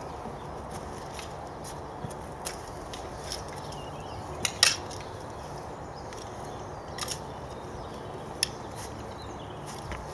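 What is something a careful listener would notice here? A spade scrapes and thuds into soil.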